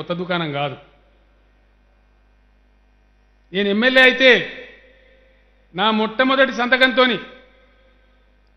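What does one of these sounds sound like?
A middle-aged man speaks forcefully into a microphone in short bursts with pauses between.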